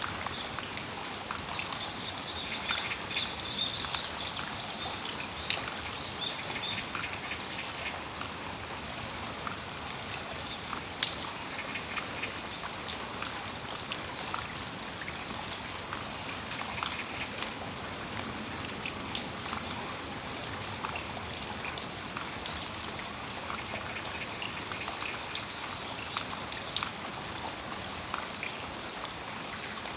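Raindrops patter and drip onto a metal awning.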